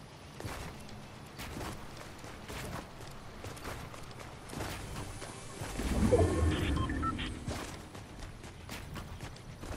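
Footsteps thud quickly on a wooden bridge.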